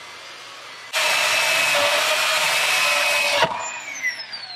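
A chainsaw cuts through a wooden log.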